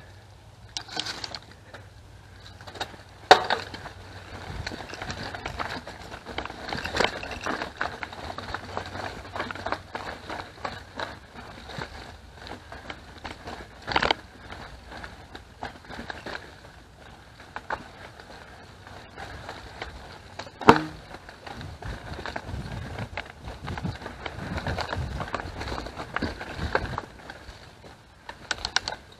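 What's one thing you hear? Bicycle tyres roll and crunch over a dry dirt trail.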